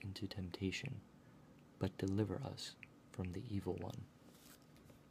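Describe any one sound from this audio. A young man reads aloud calmly, close by.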